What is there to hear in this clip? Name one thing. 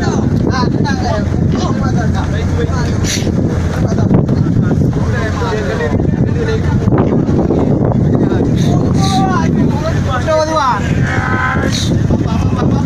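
A crowd of men talk and shout excitedly close by.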